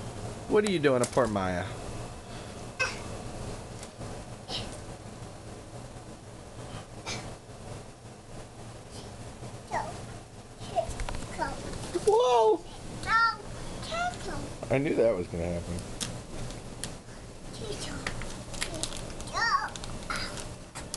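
Cushions rustle and thump as a small child climbs over them.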